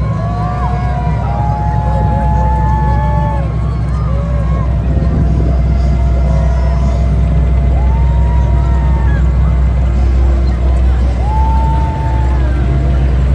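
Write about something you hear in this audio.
Heavy tracked vehicles rumble and clank past on pavement.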